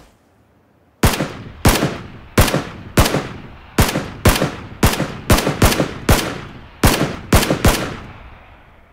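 A rifle fires single shots in quick succession, each ringing out across open ground.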